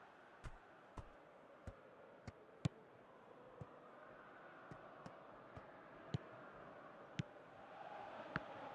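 A football is kicked with sharp thuds, again and again.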